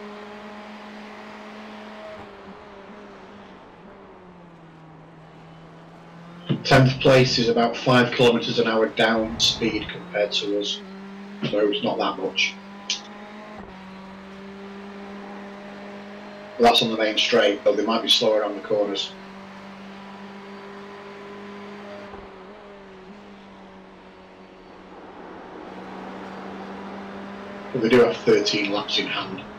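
A race car engine drones steadily, its pitch shifting slightly as it speeds up and slows down.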